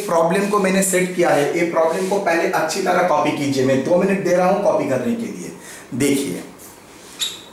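A man speaks calmly and clearly close by.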